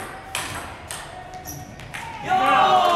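Table tennis balls click against paddles and the table in an echoing hall.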